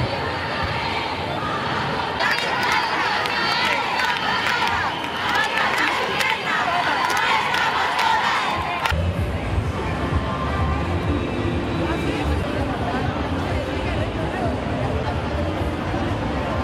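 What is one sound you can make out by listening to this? A large crowd of women chants and shouts outdoors.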